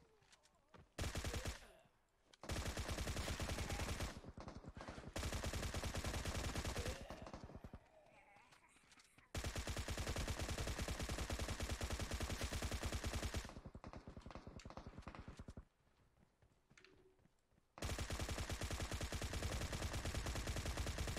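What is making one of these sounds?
An automatic rifle fires in rapid, loud bursts.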